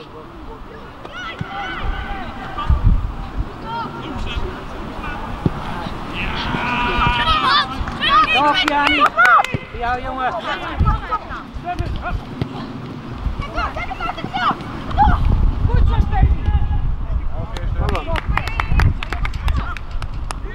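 Young players and spectators shout across an open field.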